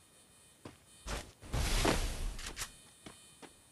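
A game character's shield wall springs up with a rushing whoosh.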